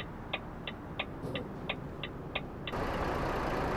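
A truck's turn signal ticks steadily inside the cab.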